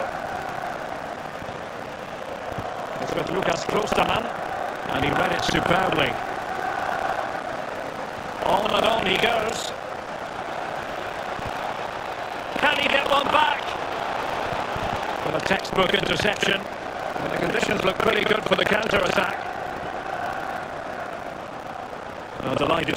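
A large crowd murmurs and chants steadily in a big stadium.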